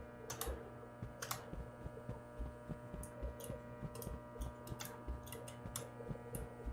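Fluorescent lights hum steadily.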